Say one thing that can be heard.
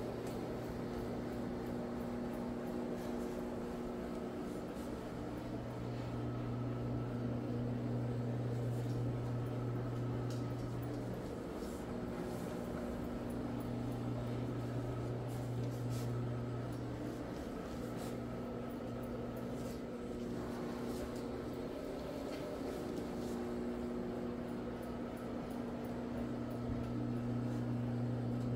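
A floor scrubbing machine hums and whirs steadily as it buffs a carpet.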